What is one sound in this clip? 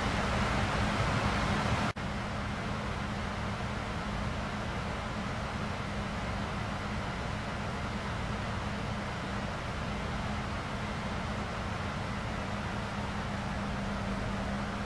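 Jet engines roar steadily with a low hum.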